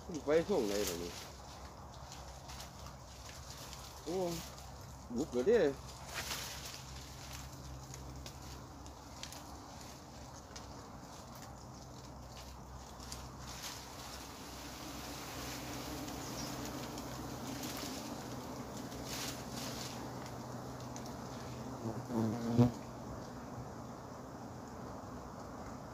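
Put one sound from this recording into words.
A swarm of bees hums steadily close by.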